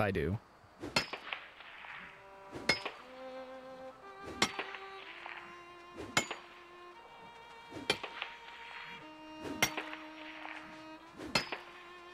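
A pickaxe strikes rock again and again with ringing clinks.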